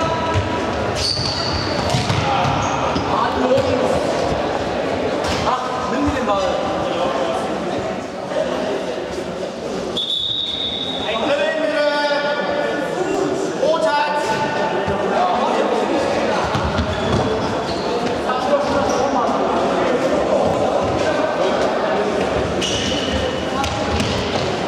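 Shoes squeak sharply on the hall floor.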